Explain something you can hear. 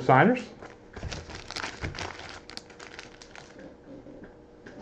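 Card packs rustle and crinkle as hands shuffle them.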